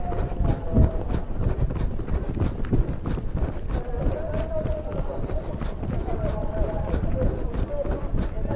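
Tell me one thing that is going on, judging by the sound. Wind rushes against a microphone outdoors.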